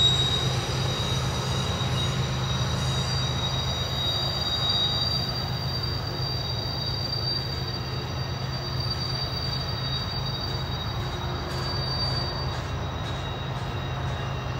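A long freight train rumbles and clatters steadily along the tracks.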